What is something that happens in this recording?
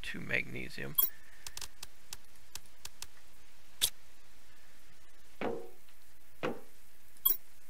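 Short electronic interface clicks sound as a menu opens and closes.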